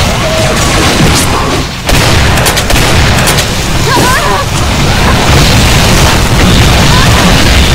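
A shotgun fires with loud booms again and again.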